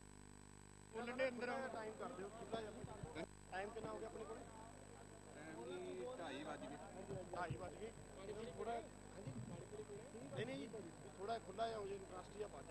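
A crowd of men chatters outdoors in the distance.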